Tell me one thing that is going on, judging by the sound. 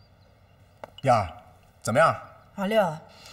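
A young man speaks up loudly.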